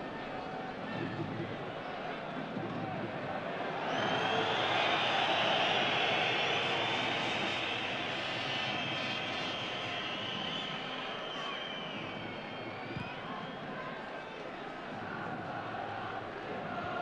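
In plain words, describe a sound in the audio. A large stadium crowd murmurs and roars steadily, swelling louder for a while.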